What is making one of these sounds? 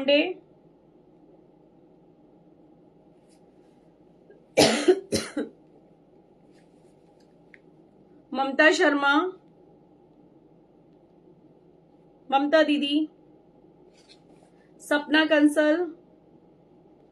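A woman speaks close by in short, calm phrases.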